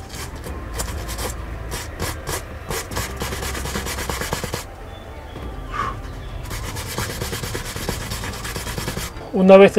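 A sponge rubs on leather with soft squeaks.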